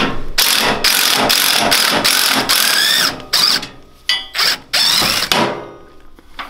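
An impact wrench whirs and rattles in loud, repeated bursts.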